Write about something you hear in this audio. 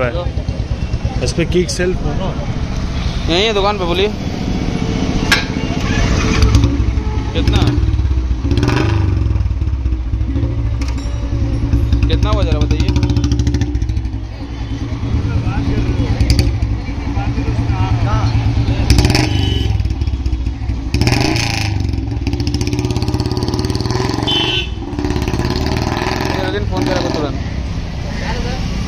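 A motorcycle engine idles with a steady low thumping.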